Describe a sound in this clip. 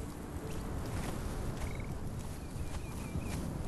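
Footsteps move through undergrowth.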